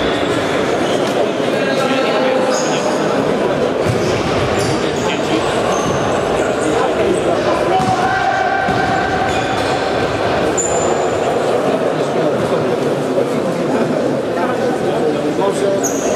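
A ball is kicked with dull thuds.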